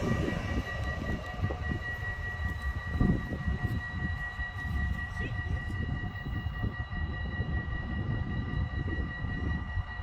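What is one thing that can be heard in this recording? A train rolls away into the distance and fades.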